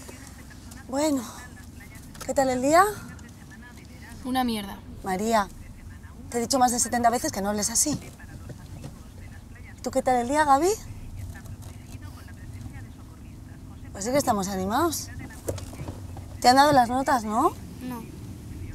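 A woman talks with animation, close by.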